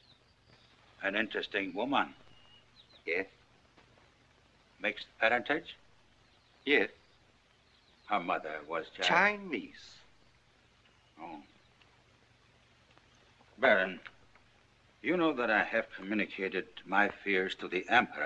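An elderly man speaks in a deep, measured voice.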